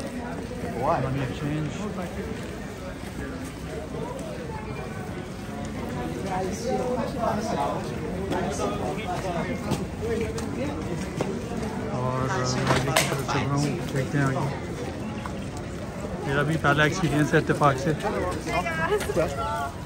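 A crowd of people chatters outdoors all around.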